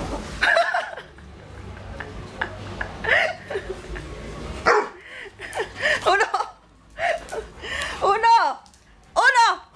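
A small dog yelps shrilly, close by.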